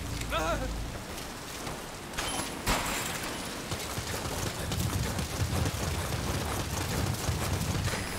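Footsteps run quickly over wet ground.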